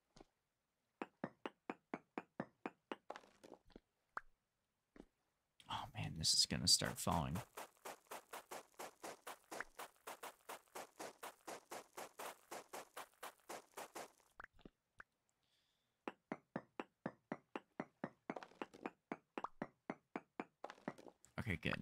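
A pickaxe chips at stone with quick, steady blows.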